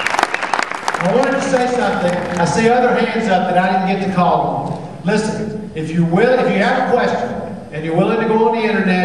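A man speaks energetically through a microphone and loudspeakers in a large hall.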